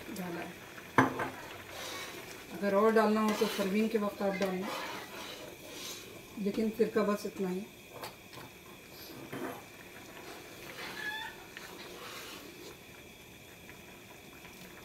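A ladle stirs and scrapes through simmering soup.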